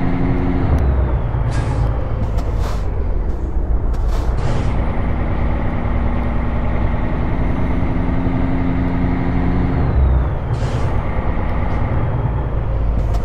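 A truck engine rumbles steadily at low revs.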